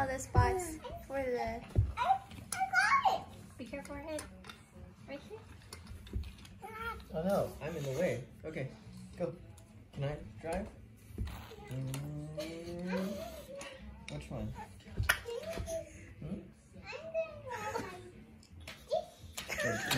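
A young woman talks softly and playfully to a baby.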